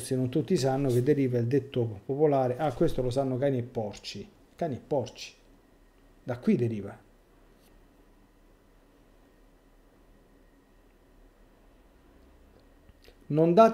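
A middle-aged man speaks with animation, close to a microphone, with pauses.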